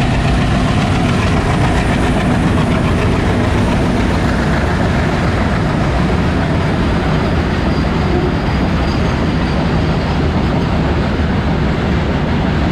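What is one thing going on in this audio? Freight wagon wheels clatter rhythmically over rail joints.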